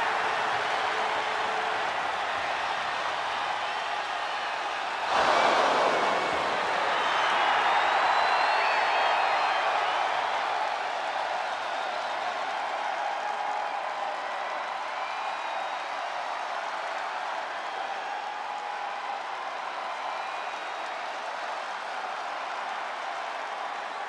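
A large crowd cheers and roars loudly throughout.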